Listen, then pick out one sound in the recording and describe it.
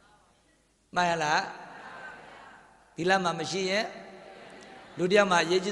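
A man speaks into a microphone in a slow, chanting voice, with short pauses.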